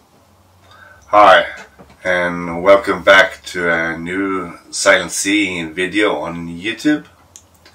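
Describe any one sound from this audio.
A middle-aged man speaks calmly and warmly, close to a microphone.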